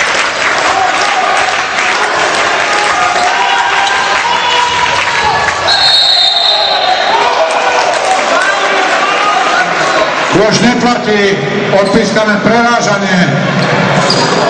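Basketball players' shoes squeak on a wooden court.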